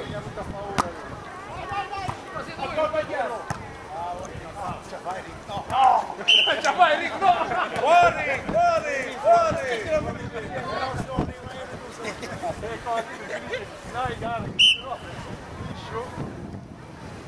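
Men shout and call out with animation outdoors.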